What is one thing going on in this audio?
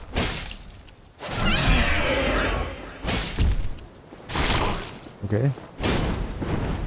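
A dragon growls and roars.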